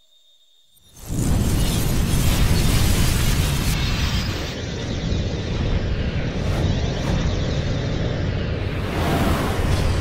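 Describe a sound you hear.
A huge explosion roars with a deep rumble.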